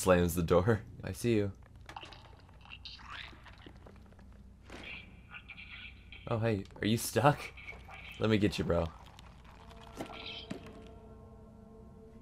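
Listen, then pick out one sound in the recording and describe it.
Light footsteps patter across wooden floorboards.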